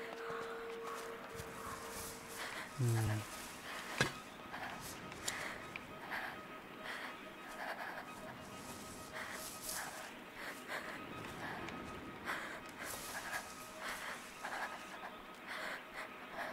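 Leafy plants rustle as someone pushes through them.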